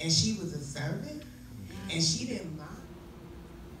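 A young woman speaks into a microphone, heard through a loudspeaker in an echoing room.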